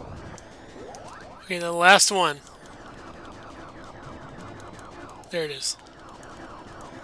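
Game laser blasts zap rapidly over and over.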